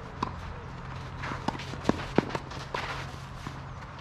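Tennis balls are struck with rackets in a rally outdoors.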